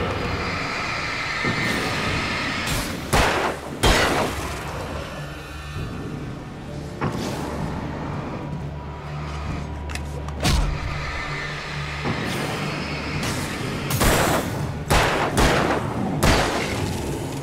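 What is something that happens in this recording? Loud bursts and explosions boom and crackle.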